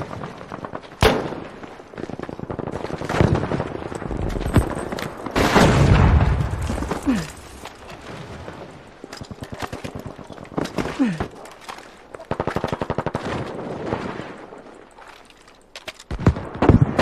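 A rifle fires loud, sharp shots with a ringing echo.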